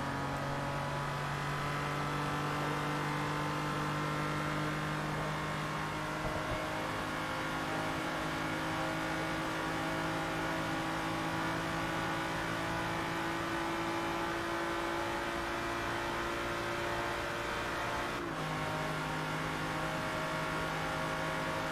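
A racing car's engine roars at high speed and slowly rises in pitch.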